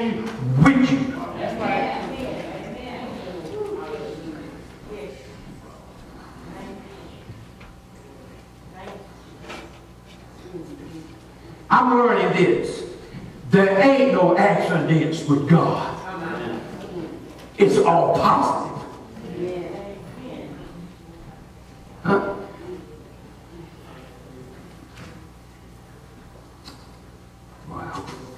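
An elderly man preaches with animation through a microphone in an echoing hall.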